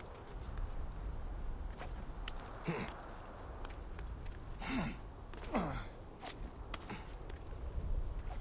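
Hands and feet scuff and tap on stone while climbing.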